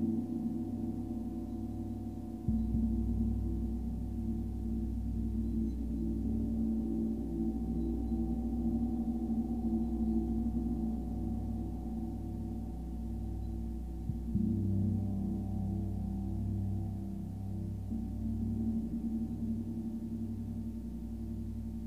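Deep singing bowls hum and ring in long overlapping tones.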